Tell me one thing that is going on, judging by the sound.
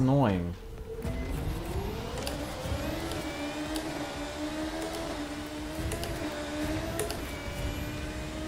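A racing car engine whines and rises in pitch as it speeds up.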